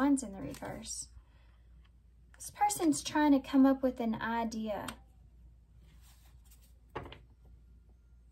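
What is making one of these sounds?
Cards slide and tap onto a table.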